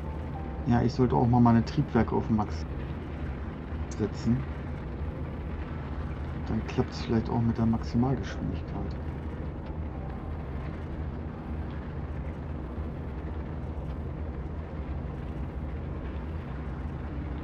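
A spacecraft engine hums low and steady.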